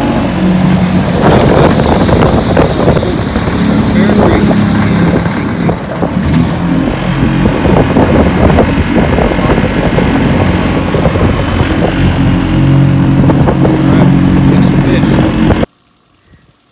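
A boat's outboard motor roars loudly at speed.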